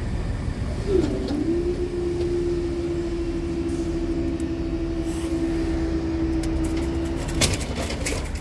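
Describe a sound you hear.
A level crossing barrier hums steadily as it rises.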